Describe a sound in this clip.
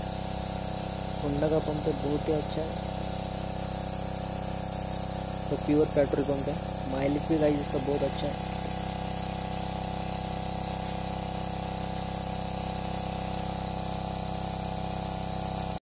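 A small petrol engine runs with a steady, droning hum close by.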